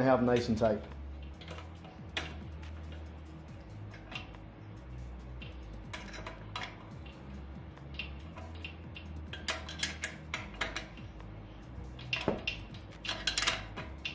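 A wrench clicks and taps against metal.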